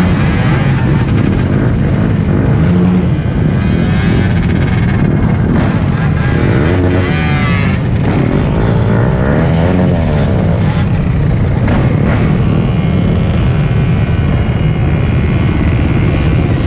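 Many motorcycle and scooter engines rumble close by.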